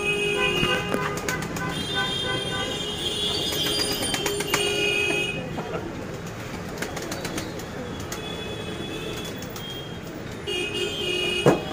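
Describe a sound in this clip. Pigeons coo softly close by.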